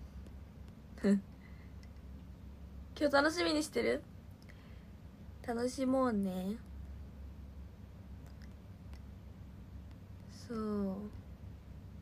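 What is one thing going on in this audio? A young woman speaks softly and brightly into a nearby microphone, in short bursts with pauses.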